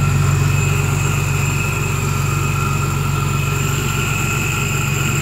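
A car engine idles steadily with a low, even rumble.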